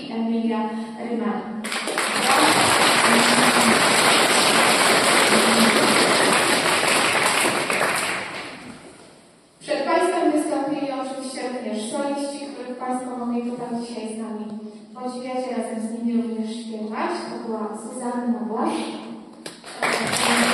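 A choir of young women and girls sings together in a large echoing hall.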